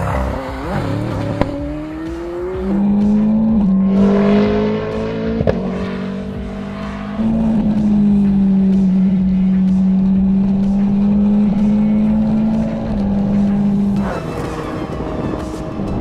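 A racing car engine roars loudly, revving up and down through the gears.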